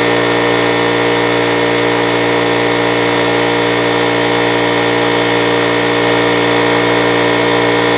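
A car engine idles with a steady, throaty rumble from the exhaust close by.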